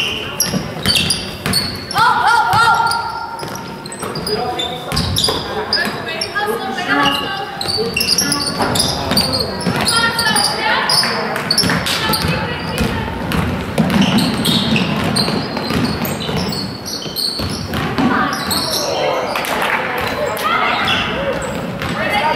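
Young players shout and call out across a large echoing gym.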